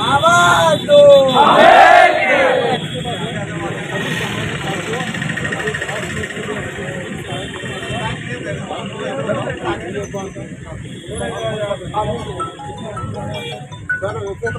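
A crowd of men talks and murmurs all around.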